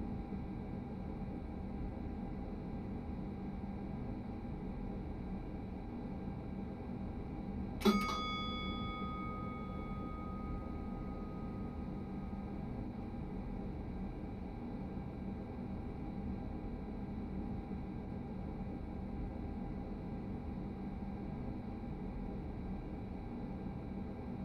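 A train's motors hum steadily at a standstill.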